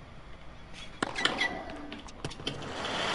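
A tennis racket hits a ball with a sharp pop.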